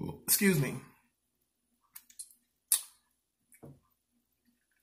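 A man chews food with wet smacking sounds.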